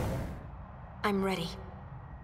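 A young woman speaks with determination.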